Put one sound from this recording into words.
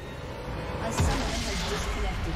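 A deep magical explosion booms.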